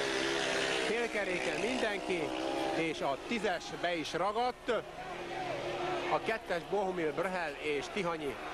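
Motorcycle engines roar, rising and falling in pitch as the bikes race.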